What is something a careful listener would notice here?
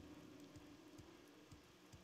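Light rain patters down outdoors.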